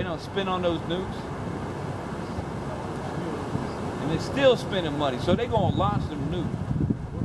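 A man speaks nearby outdoors.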